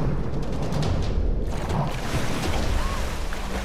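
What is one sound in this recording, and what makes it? Water splashes heavily.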